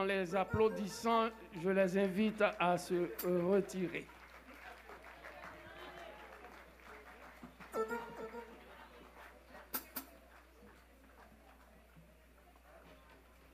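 A band plays live music.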